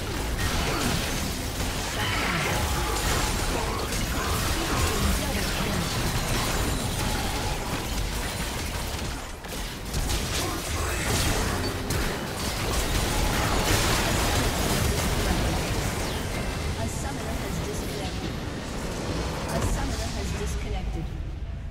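Spell effects crackle and burst in a busy fight.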